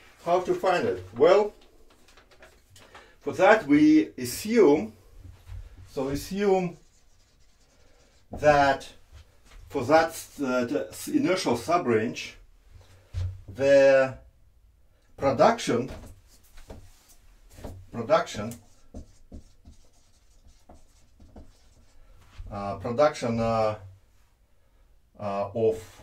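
A man speaks calmly in bursts, close by.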